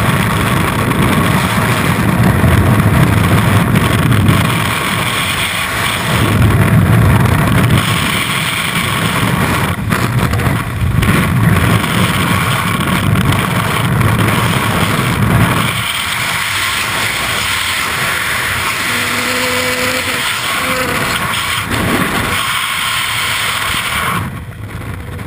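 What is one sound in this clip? Strong wind roars loudly in free fall.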